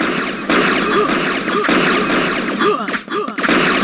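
A laser gun fires with sharp electric zaps.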